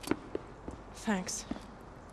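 A young man says a short word of thanks quietly.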